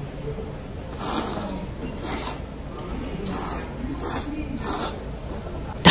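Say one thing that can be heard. A person slurps noodles noisily.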